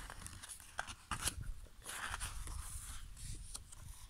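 A page of a book turns with a soft paper rustle.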